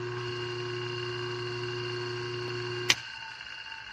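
An electrical device hums steadily.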